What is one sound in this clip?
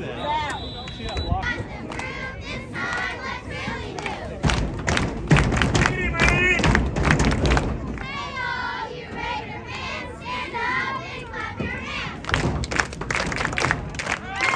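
Spectators shout and cheer loudly outdoors.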